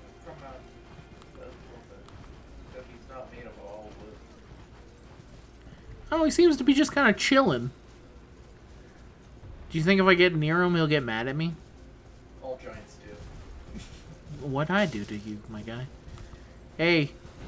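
A horse's hooves thud on soft ground.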